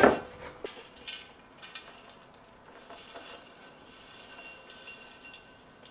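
Thick liquid pours from a jug into a bowl.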